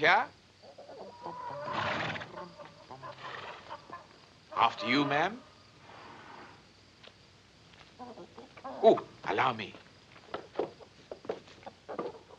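A woman speaks in a weary voice nearby.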